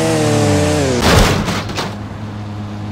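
A motorbike crashes to the ground with a clatter.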